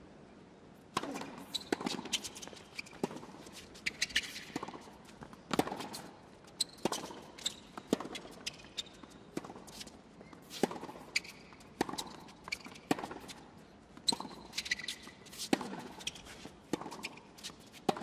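Tennis balls are struck with sharp pops back and forth.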